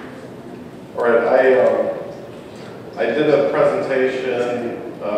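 A second man speaks calmly into a microphone.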